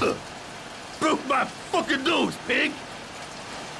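A man shouts angrily in pain, close by.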